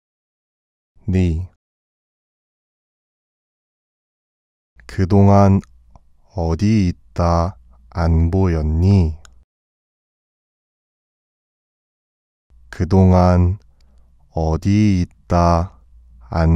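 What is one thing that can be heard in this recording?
A man speaks slowly and clearly, close to a microphone, with pauses between phrases.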